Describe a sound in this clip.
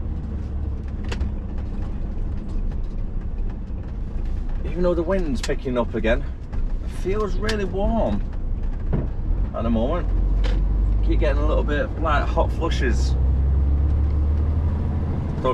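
A large vehicle's diesel engine rumbles steadily, growing louder as it speeds up.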